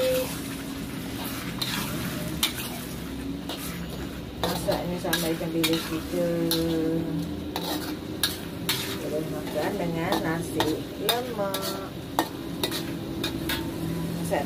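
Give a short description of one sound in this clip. Food sizzles and hisses in a hot wok.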